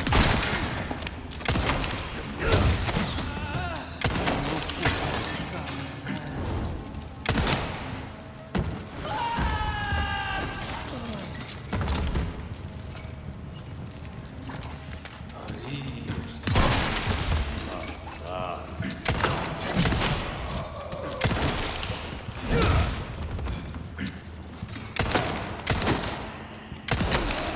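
Gunshots ring out one after another in an echoing space.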